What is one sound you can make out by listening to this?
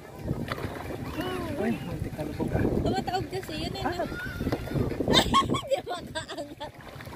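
Water splashes gently around people wading.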